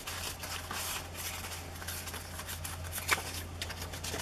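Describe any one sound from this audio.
Old paper rustles and tears close by.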